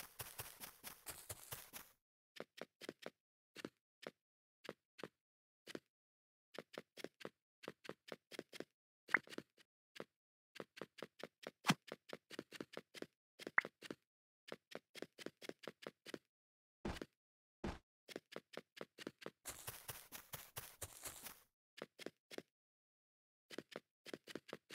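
Quick footsteps tap on hard blocks, in short bursts.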